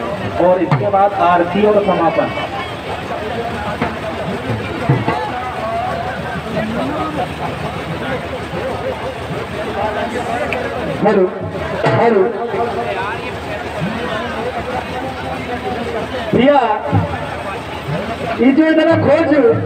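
A group of men sing loudly together outdoors.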